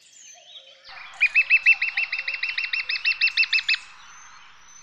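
A woodpecker drums rapidly on a tree trunk.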